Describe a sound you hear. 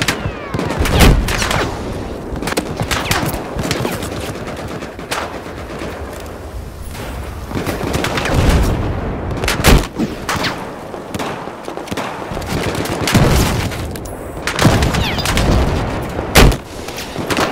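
Explosions boom with deep rumbling.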